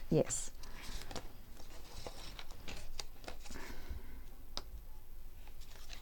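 A glue stick rubs across paper.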